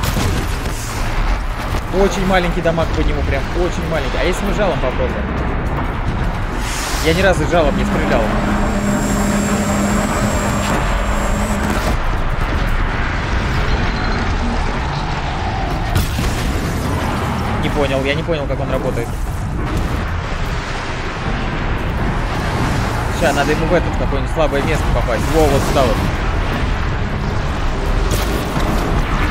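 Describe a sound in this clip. Loud crashes and explosions of a game battle rumble.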